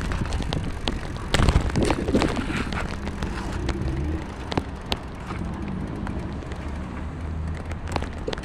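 Tyres roll along a paved road.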